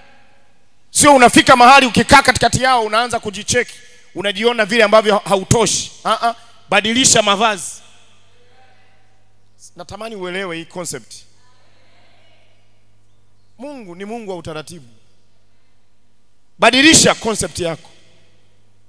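A man preaches with animation into a microphone, his voice carried over loudspeakers with pauses between phrases.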